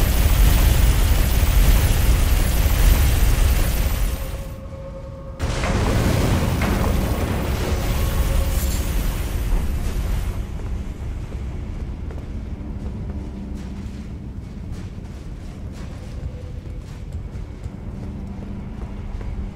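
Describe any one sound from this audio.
Lava rumbles and roars with a deep, steady rush.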